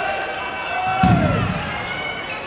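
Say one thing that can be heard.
A volleyball is hit with a dull thump.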